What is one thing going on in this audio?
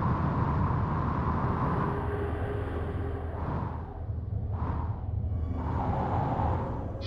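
A spacecraft engine rumbles low and steadily.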